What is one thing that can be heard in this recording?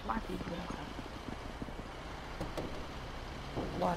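A vehicle door slams shut.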